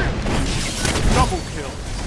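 A loud explosion bursts close by.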